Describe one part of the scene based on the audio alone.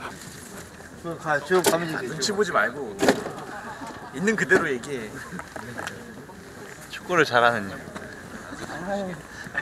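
Young men talk and laugh casually outdoors.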